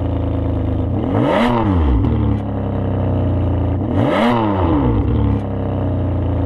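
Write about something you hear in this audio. A car engine revs sharply twice and falls back.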